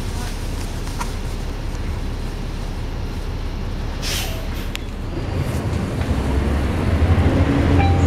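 A bus engine rumbles low while idling, then grows louder as the bus pulls away.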